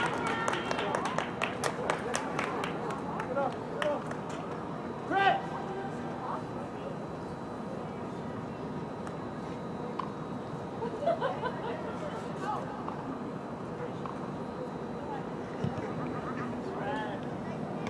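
Outdoors, spectators call and shout from the sidelines.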